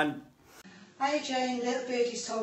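An older woman speaks calmly, slightly muffled.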